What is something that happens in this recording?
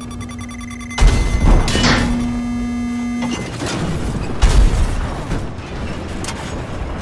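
Shells explode with deep blasts.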